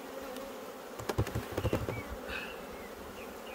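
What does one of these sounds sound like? A hive tool scrapes and knocks as a frame is pried loose.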